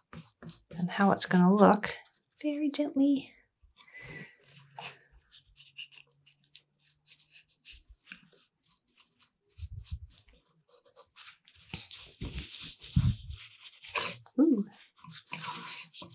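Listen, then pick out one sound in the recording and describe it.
A cloth rubs and wipes over a wooden surface.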